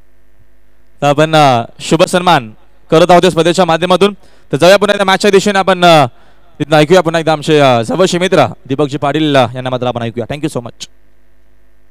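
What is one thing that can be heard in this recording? A man speaks loudly over a loudspeaker.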